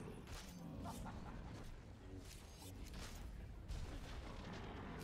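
Magic spells crackle and whoosh during a game battle.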